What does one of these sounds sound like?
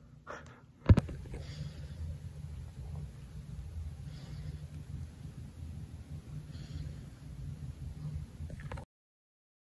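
A cat purrs steadily, very close.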